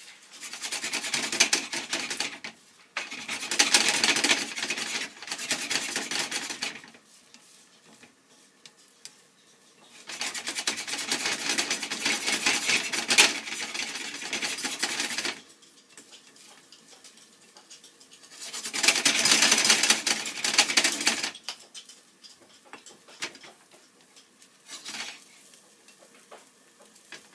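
Chopsticks scrape and stir eggs in a frying pan.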